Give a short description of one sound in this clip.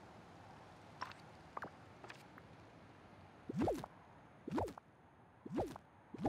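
Short game menu blips and swooshes sound as menus open and items are placed.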